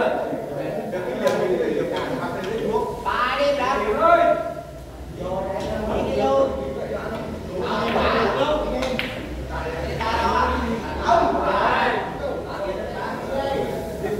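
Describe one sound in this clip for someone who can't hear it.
Men talk nearby in a lively, echoing room.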